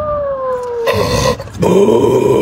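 A dog barks and grumbles loudly up close.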